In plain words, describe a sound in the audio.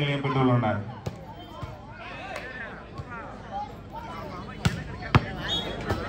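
A volleyball is struck by hand with sharp slaps.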